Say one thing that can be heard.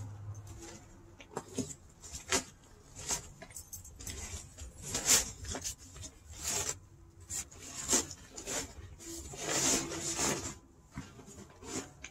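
Fabric crinkles and rustles as a man unrolls it on pavement.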